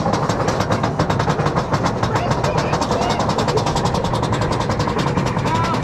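A roller coaster clatters rapidly along its track.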